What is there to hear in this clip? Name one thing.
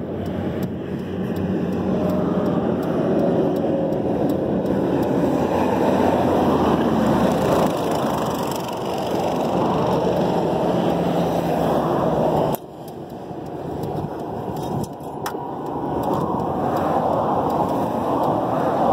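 An engine idles with a loud, steady rumble close by.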